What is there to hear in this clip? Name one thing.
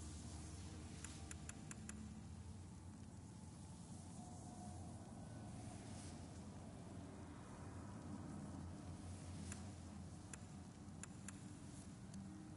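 Soft menu clicks tick several times in quick succession.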